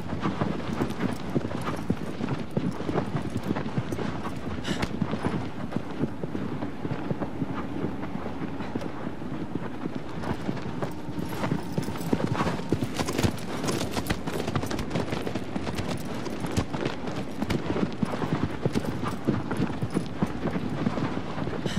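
A horse gallops with hooves thudding on sand.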